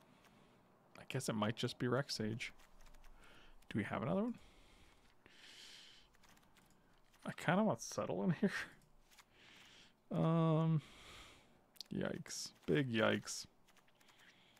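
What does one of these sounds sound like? A middle-aged man talks casually into a close microphone, in short bursts.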